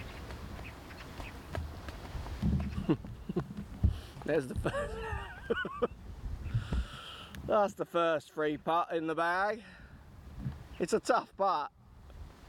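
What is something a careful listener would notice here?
A golf ball rolls softly across short grass.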